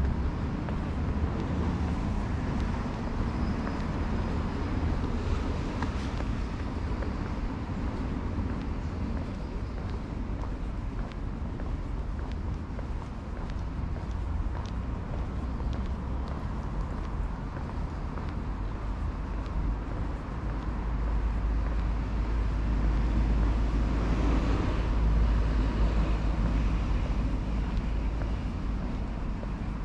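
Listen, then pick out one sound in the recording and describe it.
Wind blows and rumbles steadily outdoors.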